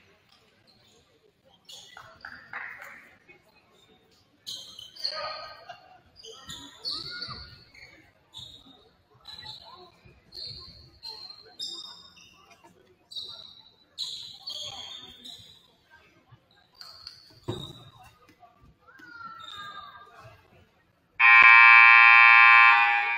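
Players and coaches talk in a huddle in a large echoing gym.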